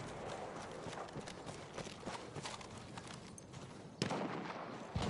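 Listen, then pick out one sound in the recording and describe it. Gunshots crack repeatedly in the distance.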